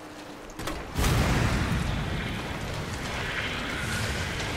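A fiery explosion booms and flames roar.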